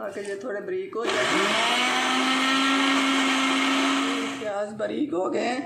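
A blender whirs loudly, grinding food.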